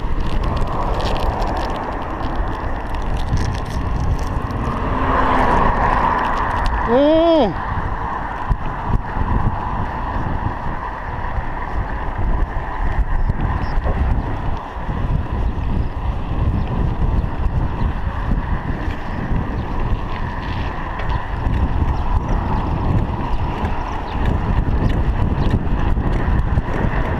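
Wind buffets a microphone while cycling on a paved road.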